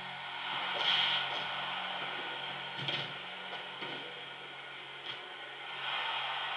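Blows land with dull thuds from a small television speaker.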